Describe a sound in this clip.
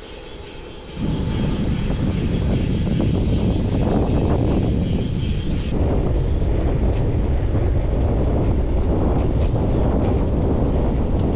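Bicycle tyres roll steadily on a paved path.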